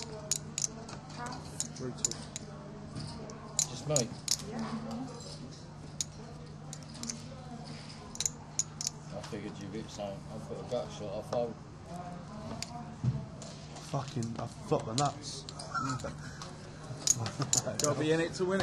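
Playing cards slide and flick on a felt table.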